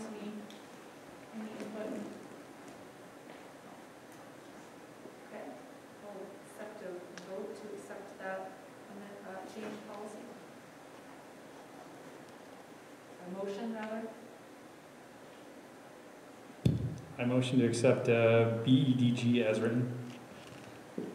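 A woman speaks calmly at a distance in a large echoing room.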